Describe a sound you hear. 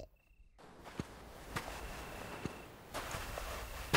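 Flip-flops slap softly on the ground.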